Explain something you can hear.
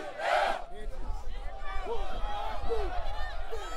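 A large marching band plays brass and drums outdoors.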